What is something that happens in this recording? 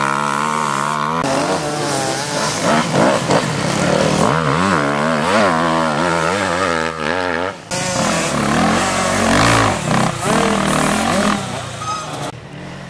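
A dirt bike engine revs loudly, rising and falling in pitch as the bike takes corners.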